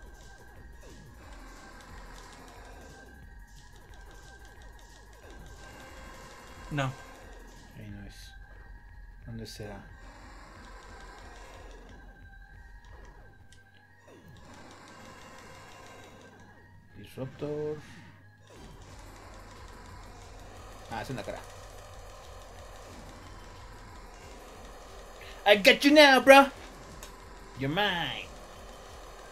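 Electronic blasts and zaps sound from a video game.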